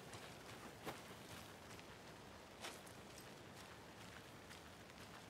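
Footsteps crunch slowly on a forest path.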